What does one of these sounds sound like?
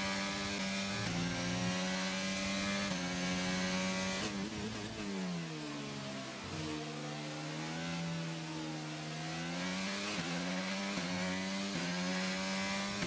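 A racing car engine screams at high revs, its pitch stepping up with gear changes.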